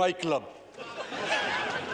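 An elderly man speaks into a microphone in a large hall.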